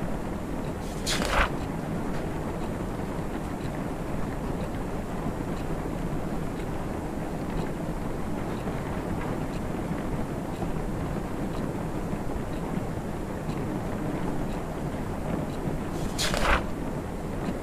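A paper page flips over with a quick swish.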